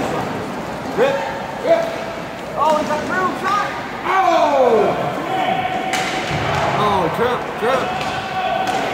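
Children shout to each other in a large echoing hall.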